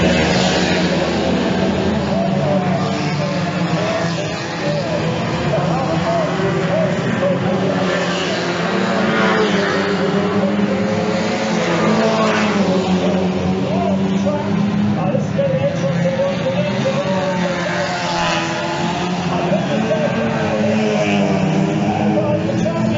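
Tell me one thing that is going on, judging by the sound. Several car engines roar and rev loudly.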